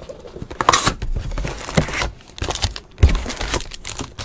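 Cards rustle and slide against each other.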